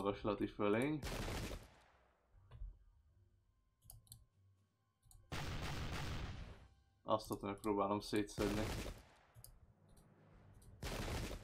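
Musket volleys fire with a loud crackling rush.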